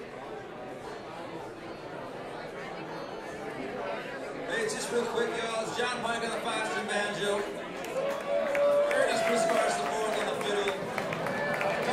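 A string band plays a lively tune with banjo, guitars and upright bass.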